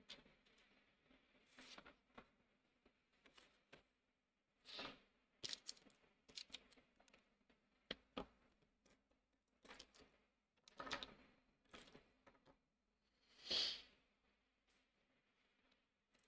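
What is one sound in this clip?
A hand rubs and brushes across paper.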